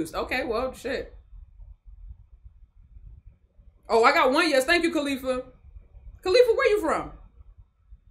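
A young woman speaks in short, lively bursts in a high voice.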